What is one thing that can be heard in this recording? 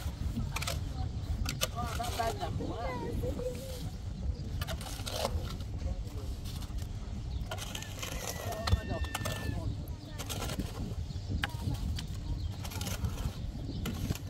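A shovel scrapes through gravel.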